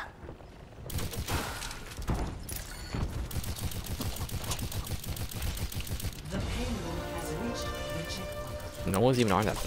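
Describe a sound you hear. A pistol fires rapid bursts of shots.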